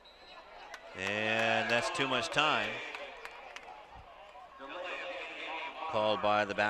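A crowd outdoors cheers and shouts.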